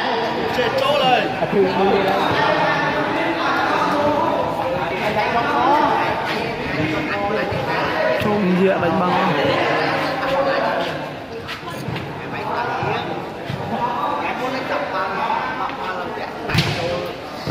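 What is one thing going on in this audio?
Many men talk and call out across a large echoing hall.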